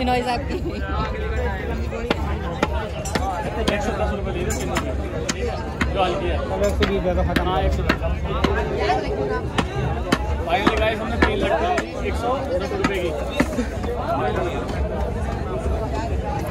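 Several young men talk with animation close by.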